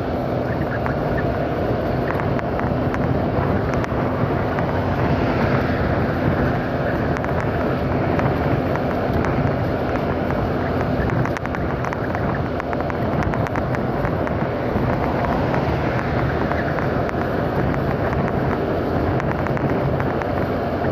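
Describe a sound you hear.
A motorcycle engine hums while cruising.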